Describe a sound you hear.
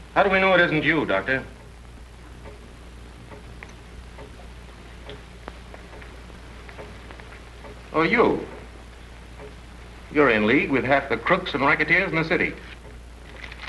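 Men talk with each other in low, serious voices, heard through an old, hissy recording.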